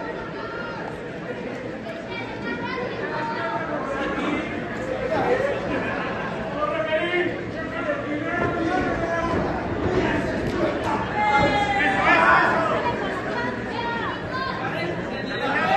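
Bodies thud onto a wrestling ring's canvas.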